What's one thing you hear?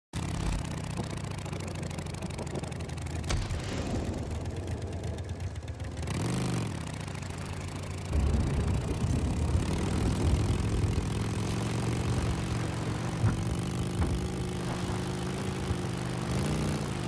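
Motorcycle tyres rumble over rough ground.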